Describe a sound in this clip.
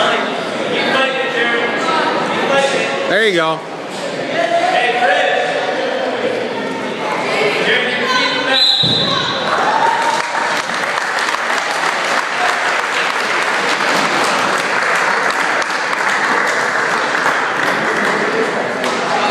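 A crowd of people shouts and cheers in a large echoing gym.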